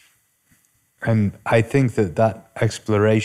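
A young man speaks clearly and with animation into a close microphone.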